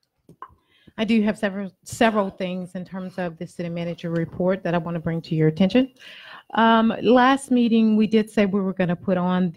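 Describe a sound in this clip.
A woman speaks steadily into a microphone.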